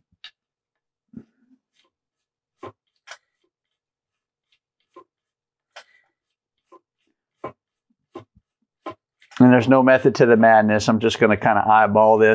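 A plastic tool rubs and taps softly against a wooden rod.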